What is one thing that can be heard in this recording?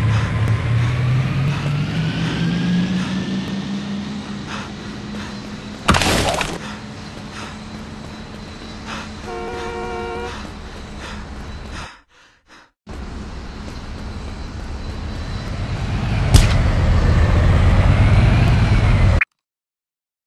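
A car engine revs up and hums.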